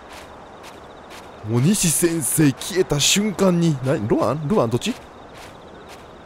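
Footsteps tap lightly on hard ground.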